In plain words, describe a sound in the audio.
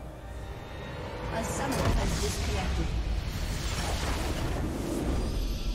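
Game spell effects crackle and whoosh.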